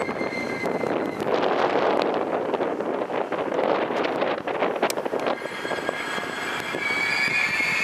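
A passenger train rolls past with wheels clattering on the rails.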